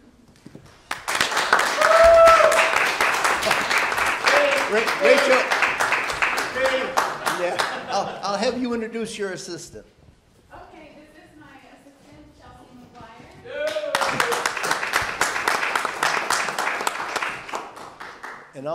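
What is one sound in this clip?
A crowd of people applauds loudly.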